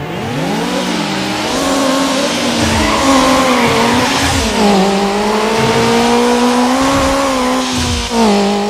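Tyres hiss on the road.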